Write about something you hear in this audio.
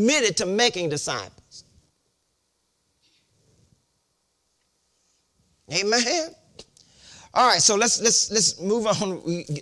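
An elderly man preaches with animation through a microphone.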